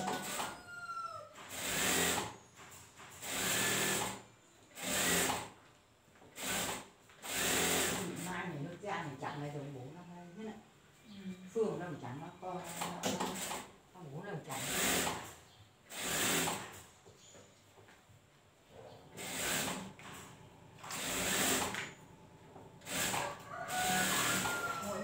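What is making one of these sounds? A sewing machine runs in short bursts.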